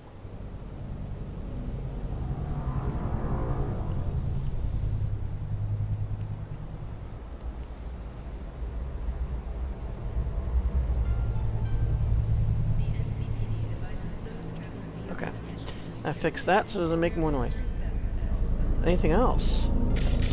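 A low city hum drones steadily in the distance.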